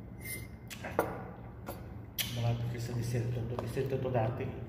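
Metal cutlery clinks against a plate.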